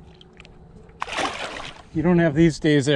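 Water splashes as a fish is released.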